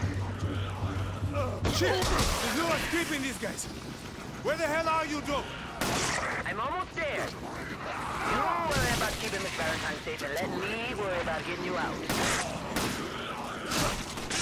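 Heavy blows thud during a close fight.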